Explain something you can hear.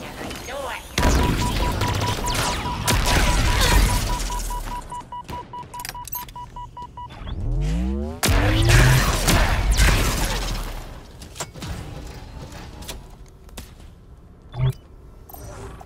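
Explosions and blasts boom loudly.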